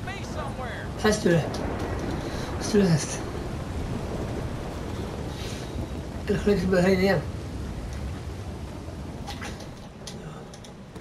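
Light rain patters outdoors.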